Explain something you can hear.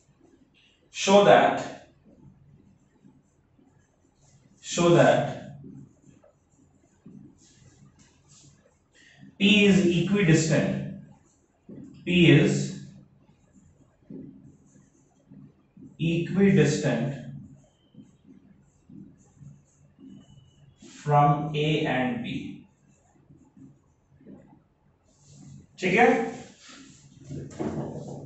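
A man speaks in short bursts, calmly explaining, close by.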